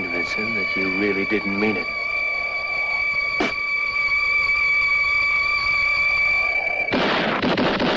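A man whistles a long, steady note.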